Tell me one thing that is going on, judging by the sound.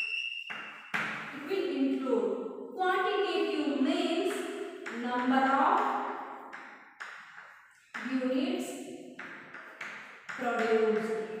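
A young woman speaks calmly, nearby.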